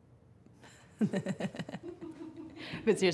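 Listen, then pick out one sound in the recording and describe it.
A young woman laughs heartily close by.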